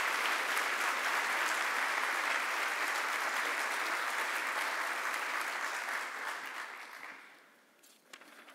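An audience applauds in a large hall, then the applause fades.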